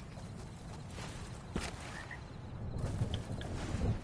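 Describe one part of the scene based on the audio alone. Water splashes as feet wade through it.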